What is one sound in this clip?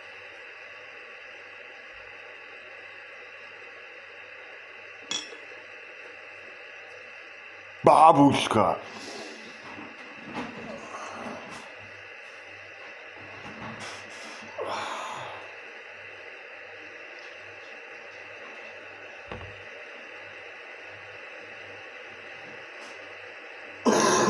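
A kettle hisses steadily as its water heats.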